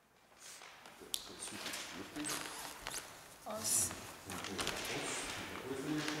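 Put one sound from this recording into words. A young girl speaks calmly nearby in an echoing hall.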